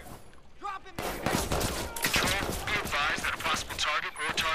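Rapid gunshots crack loudly and repeatedly.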